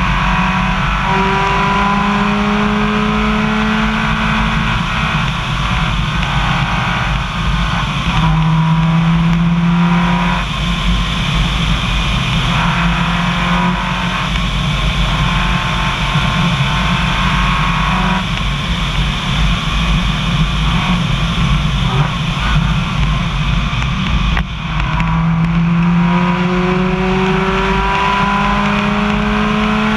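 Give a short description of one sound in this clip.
A car engine hums and rises in pitch as it speeds up, then drops as it changes gear.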